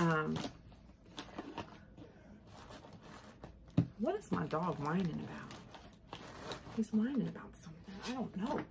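Paper and tissue rustle as a box is unpacked.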